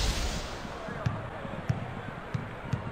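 A basketball bounces steadily on a hard floor.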